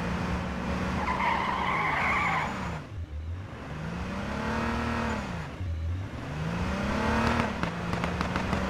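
A police siren wails, rising and falling.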